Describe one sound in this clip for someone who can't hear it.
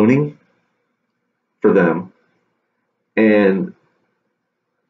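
A young man speaks close to a microphone in short, animated bursts.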